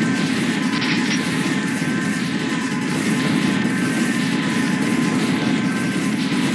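Explosions boom one after another.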